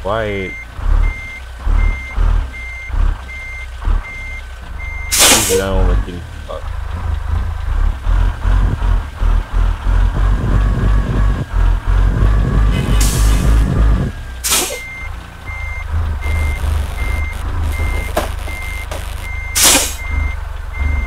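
A heavy truck engine rumbles and idles while maneuvering slowly.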